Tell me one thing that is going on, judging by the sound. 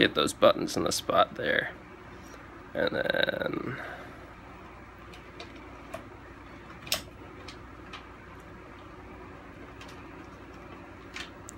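A metal tool clicks and scrapes against hard plastic.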